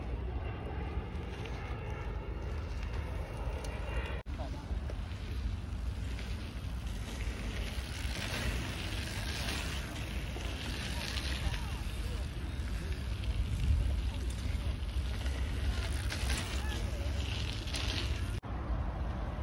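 Bicycle tyres roll and crunch over a dirt track.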